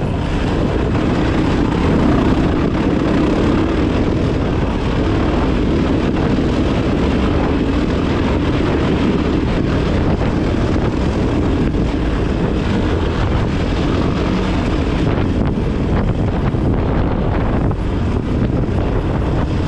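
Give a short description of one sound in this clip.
Tyres crunch over loose gravel.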